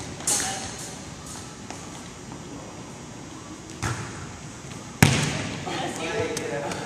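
Volleyballs thump off hands and bounce on a wooden floor in a large echoing gym.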